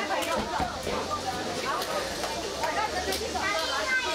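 A young girl claps her hands.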